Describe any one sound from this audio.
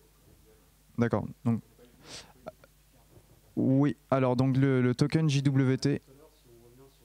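A young man speaks through a microphone in a room, in short bursts with pauses.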